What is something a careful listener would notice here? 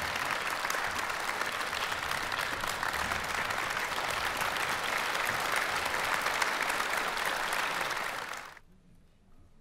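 An audience applauds in a large hall, then the clapping dies away.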